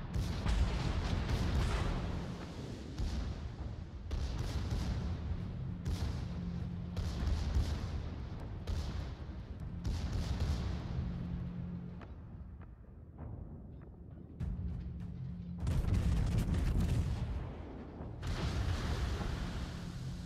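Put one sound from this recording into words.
Heavy naval guns boom again and again, with deep rumbling blasts.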